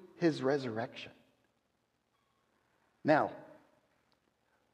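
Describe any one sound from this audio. An older man speaks with animation through a microphone, with pauses.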